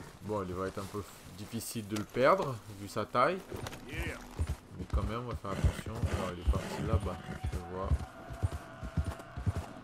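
A horse's hooves thud and crunch through snow.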